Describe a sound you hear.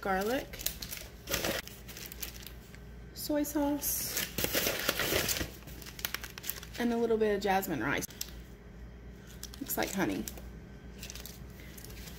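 A plastic packet crinkles and rustles in a hand.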